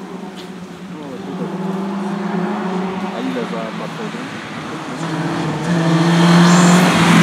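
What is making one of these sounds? A car engine approaches from a distance and grows to a loud roar.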